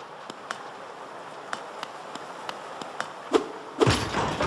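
Light footsteps tap quickly on a hard floor.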